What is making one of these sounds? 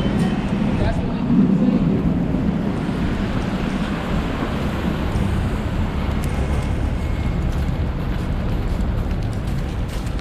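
Outdoors, city traffic rumbles past in light wind.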